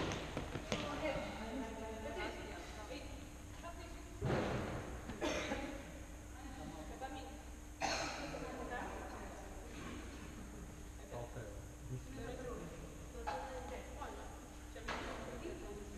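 Shoes squeak and thud on a hard floor in a large echoing hall.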